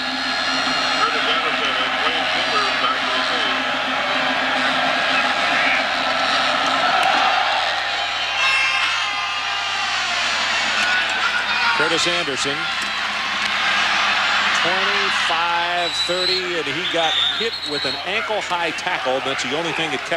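A large crowd roars and cheers in a big stadium.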